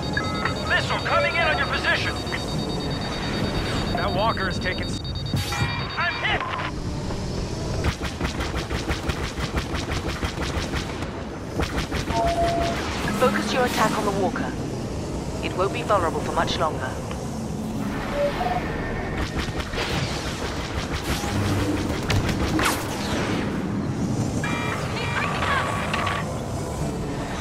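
A starfighter's engines roar steadily.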